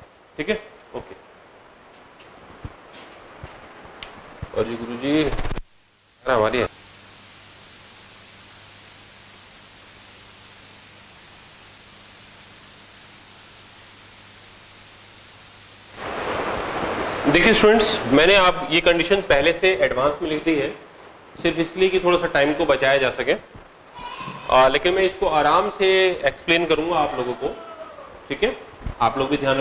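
A man speaks clearly and steadily into a close microphone.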